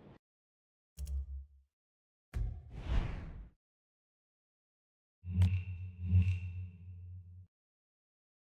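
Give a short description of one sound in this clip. Short electronic interface sounds chime and whoosh.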